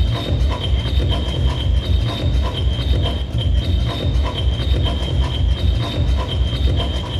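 Upbeat music with a steady, pounding beat plays loudly over speakers.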